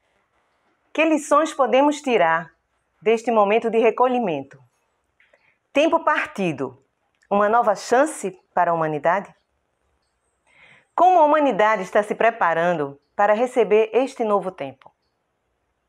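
A middle-aged woman speaks calmly and warmly, close to a microphone.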